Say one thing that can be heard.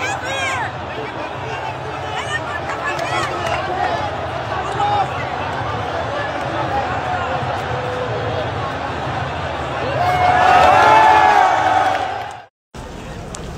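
A stadium crowd chants and cheers loudly around.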